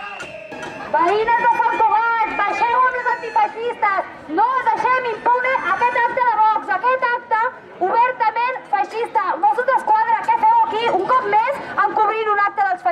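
A young woman shouts through a megaphone.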